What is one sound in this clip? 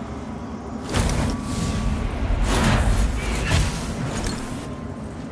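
A burst of magic whooshes loudly.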